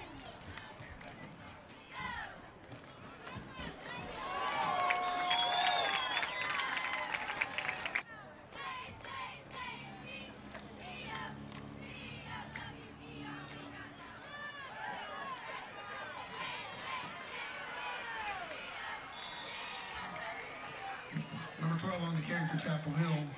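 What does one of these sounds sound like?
A crowd cheers and shouts from the stands of an outdoor stadium.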